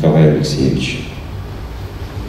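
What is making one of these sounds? A man speaks into a microphone through loudspeakers in a large hall.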